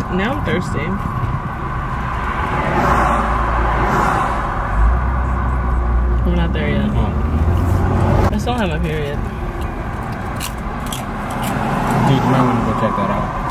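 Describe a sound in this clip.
A car engine hums with a steady road rumble.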